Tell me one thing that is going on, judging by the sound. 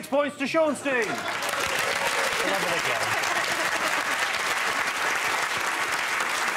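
A studio audience applauds loudly.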